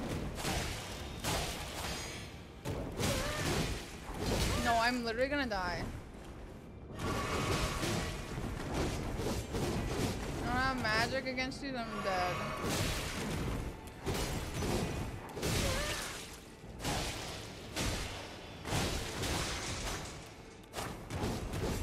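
Swords clash and slash in quick bursts of game combat.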